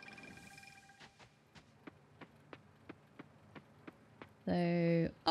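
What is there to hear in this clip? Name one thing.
Footsteps crunch at an even pace on snowy ground.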